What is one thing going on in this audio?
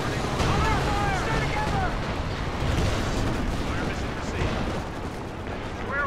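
Explosions and gunfire rumble from a battle game.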